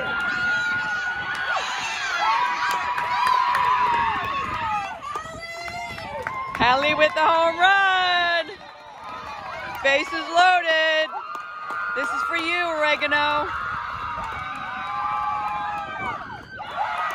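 A group of young women cheer and shout excitedly nearby.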